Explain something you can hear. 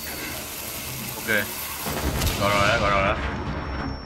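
A charge blasts through a wall with a loud burst and scattering debris.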